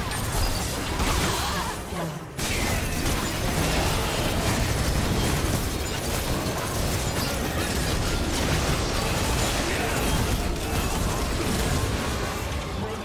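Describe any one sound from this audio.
Video game spell effects crackle and boom in a busy fight.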